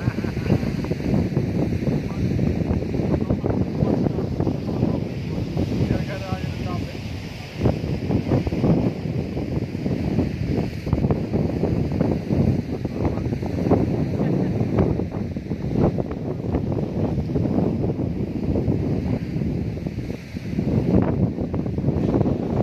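Wind blows hard outdoors.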